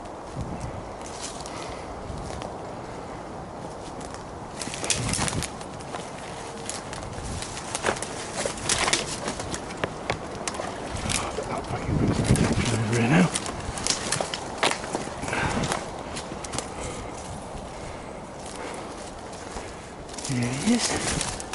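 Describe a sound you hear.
Footsteps crunch through dry twigs and leaf litter.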